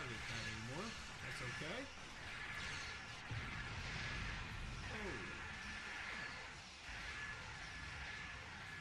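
Laser beams fire in rapid bursts.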